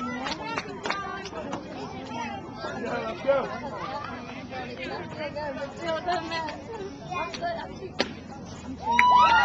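Spectators close by chatter and call out outdoors.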